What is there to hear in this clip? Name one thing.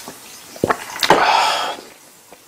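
A man lets out a loud satisfied gasp.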